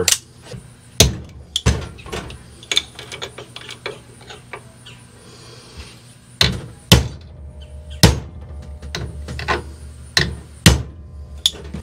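Metal tools click and clank against a metal part.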